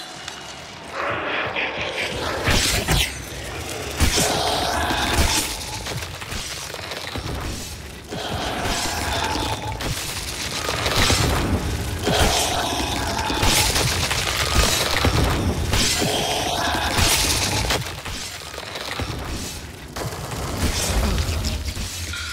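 Heavy blows strike and slash repeatedly.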